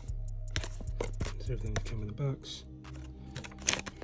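A cardboard box is opened with soft scrapes.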